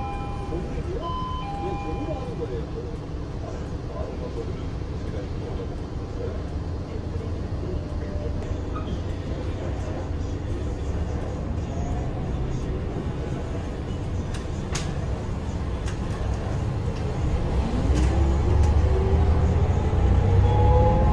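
A bus engine rumbles low while idling, then revs up with a rising whine as the bus pulls away.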